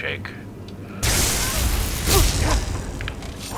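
Electric crackling bursts loudly.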